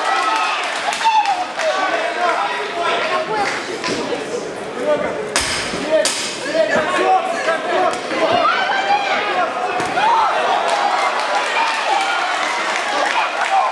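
Gloved punches thud sharply.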